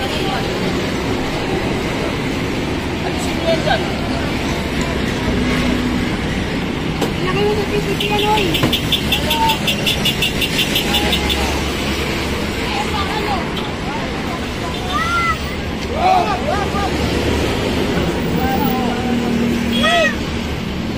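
Traffic rumbles on a busy street.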